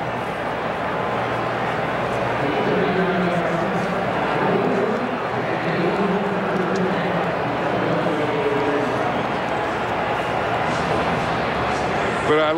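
A large crowd roars steadily outdoors.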